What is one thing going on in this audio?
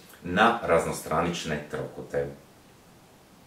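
A young man speaks calmly and close by.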